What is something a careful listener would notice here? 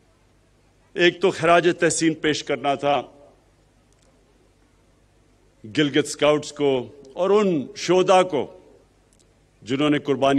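A man speaks forcefully into a microphone in short phrases with pauses.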